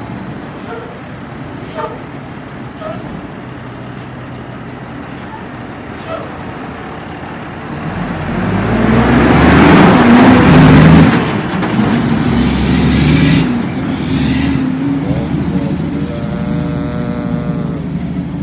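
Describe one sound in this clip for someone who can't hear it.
A heavy truck engine rumbles, then roars loudly as the truck drives close past and fades away.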